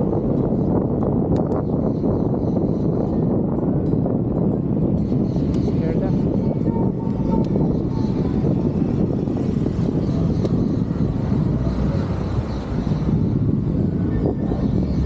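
Wind rumbles loudly against a microphone.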